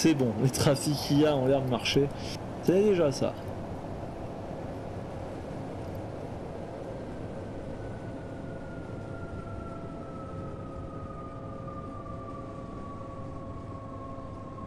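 An electric train rumbles steadily along the rails.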